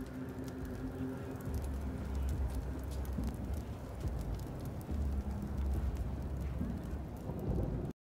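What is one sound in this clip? A fire crackles and roars in a barrel.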